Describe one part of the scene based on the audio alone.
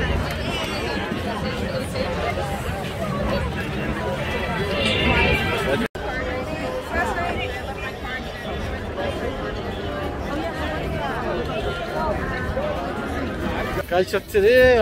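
A crowd of people chatters and mingles outdoors.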